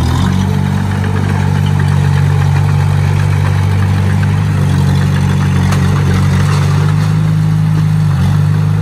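A diesel engine of a bulldozer rumbles steadily close by.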